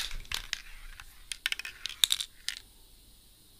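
A spray can rattles as it is shaken.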